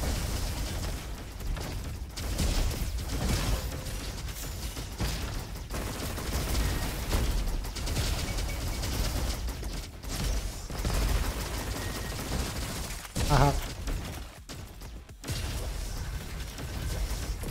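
Rapid gunfire and energy blasts ring out.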